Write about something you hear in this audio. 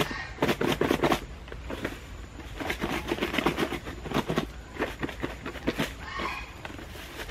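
A plastic container crinkles and rattles in someone's hands.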